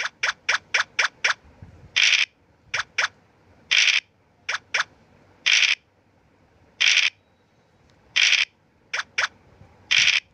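Game pieces tick quickly as they hop from square to square.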